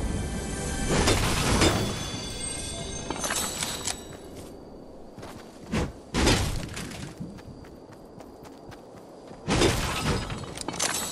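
A pickaxe strikes objects with sharp knocks.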